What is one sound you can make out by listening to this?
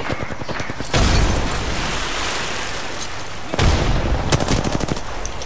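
An explosion booms deeply.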